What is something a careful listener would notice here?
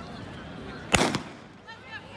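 A starting pistol fires once outdoors.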